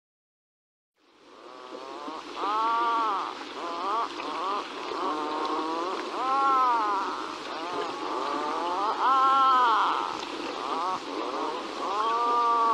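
Geese and swans call over and over on the water.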